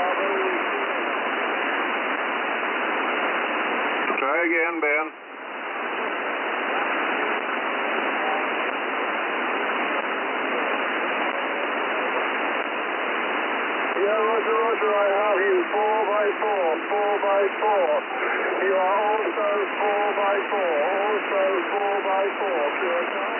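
Radio static hisses steadily through a receiver.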